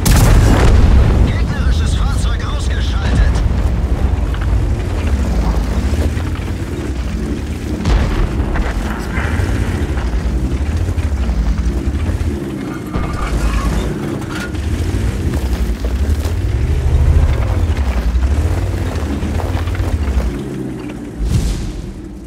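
Explosions boom with sharp blasts.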